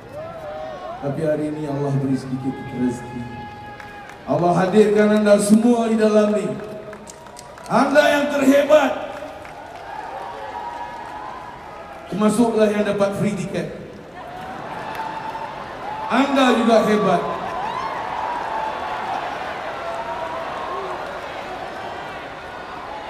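A rock band plays loudly through loudspeakers in a large echoing arena.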